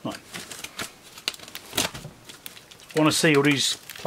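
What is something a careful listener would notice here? Packing tape peels off a cardboard box.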